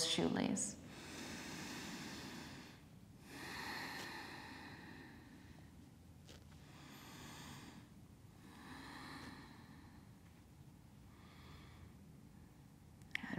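A woman breathes out slowly and deeply.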